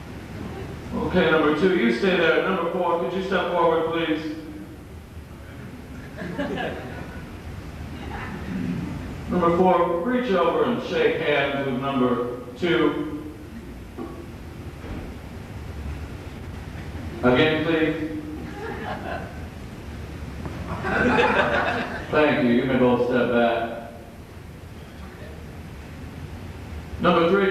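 A man speaks loudly and with feeling in a room with some echo, heard through a microphone.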